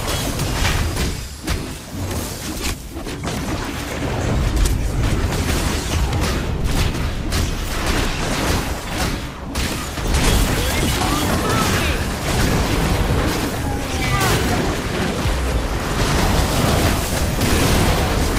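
Electric bolts crackle and zap.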